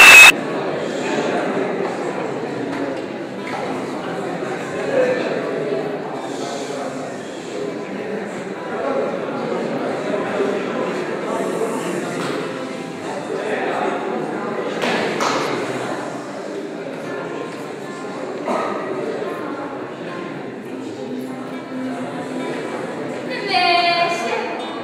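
A young woman speaks with animation in a large echoing hall.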